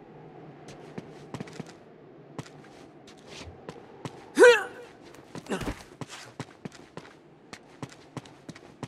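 Footsteps tap across a tiled roof.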